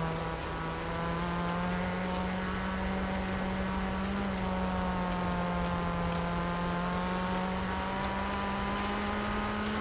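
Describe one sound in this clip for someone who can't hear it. A car engine hums steadily at high revs, its pitch shifting slightly.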